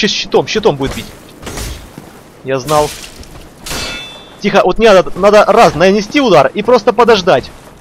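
Metal swords clang against shields in a fight.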